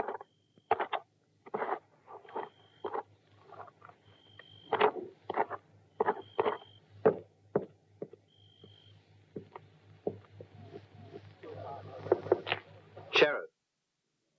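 Footsteps thud on a wooden porch.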